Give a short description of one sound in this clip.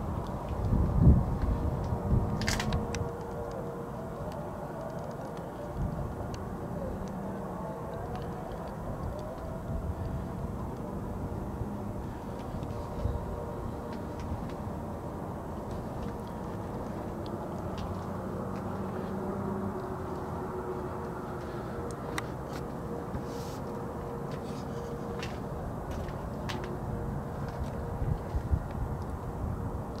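A bus engine idles with a low, steady hum nearby.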